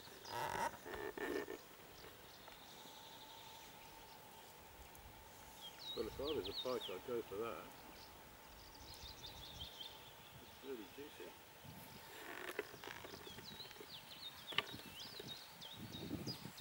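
An elderly man talks calmly outdoors, close by.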